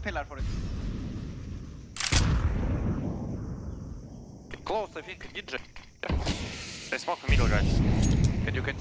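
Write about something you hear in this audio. A smoke grenade hisses loudly as it pours out smoke.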